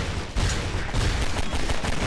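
A pistol fires a quick burst of shots.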